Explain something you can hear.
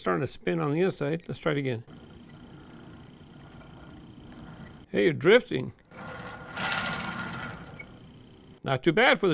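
A small plastic toy truck rattles softly.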